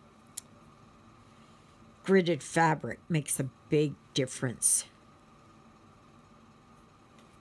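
A needle and thread pull softly through stiff canvas.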